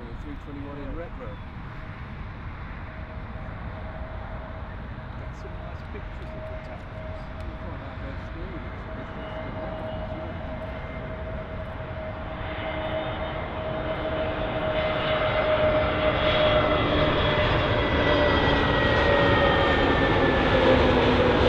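A jet airliner's engines whine, growing louder as it approaches on a low descent.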